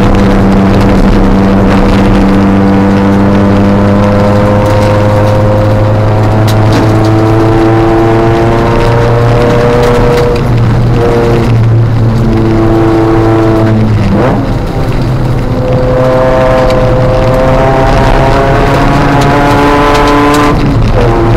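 A car engine roars loudly from inside the car, revving up and down through the gears.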